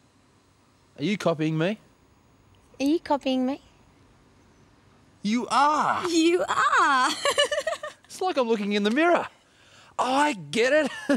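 A man speaks cheerfully nearby.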